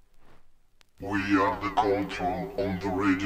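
Music plays from a vinyl record.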